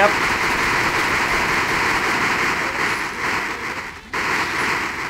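A welding torch hisses and crackles steadily.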